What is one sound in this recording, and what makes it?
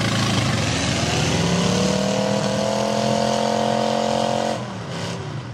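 A winch whines as it pulls a stuck truck.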